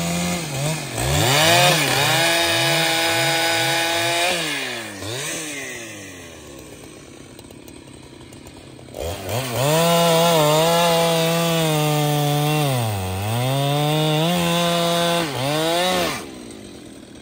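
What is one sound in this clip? A chainsaw cuts through a log.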